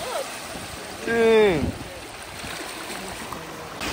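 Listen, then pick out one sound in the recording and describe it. Small waves break and fizz into foam.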